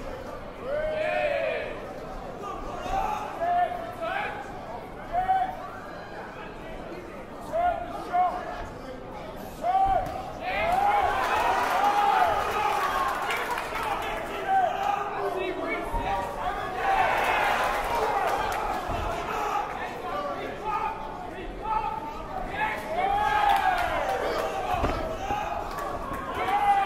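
A crowd of men and women shouts and cheers loudly in an echoing hall.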